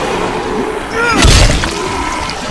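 A heavy blow thuds into a body.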